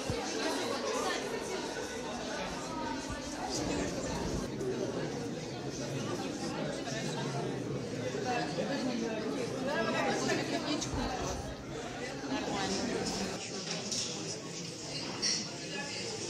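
A crowd of men and women chatter nearby in a large room.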